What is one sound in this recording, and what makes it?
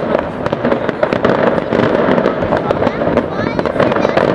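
Fireworks crackle and pop rapidly.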